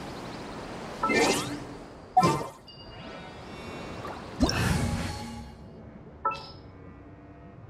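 Game menu sounds chime and whoosh.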